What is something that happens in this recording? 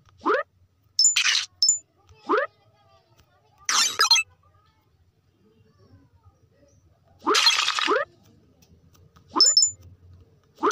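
A bright coin chime pings now and then.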